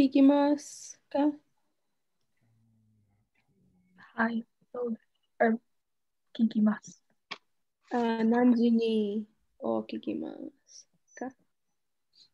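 A young woman talks casually over an online call.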